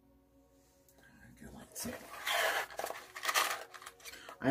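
A cardboard box rustles and scrapes as it is handled close by.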